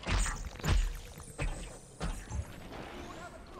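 Crackling energy blasts burst and boom with heavy thuds.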